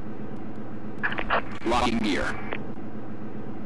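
A young man speaks briefly into a close microphone.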